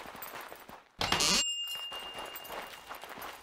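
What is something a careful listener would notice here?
A chest creaks open with a bright chime.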